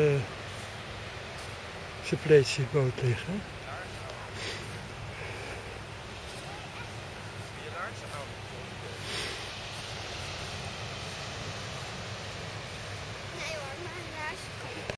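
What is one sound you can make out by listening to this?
Waves wash gently onto a beach.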